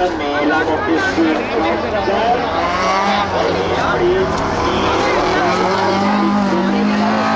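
Rally car engines roar and rev hard close by, outdoors.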